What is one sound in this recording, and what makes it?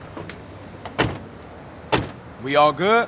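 A metal van door clanks.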